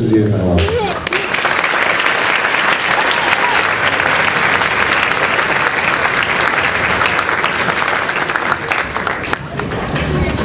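A large audience applauds loudly in a large hall.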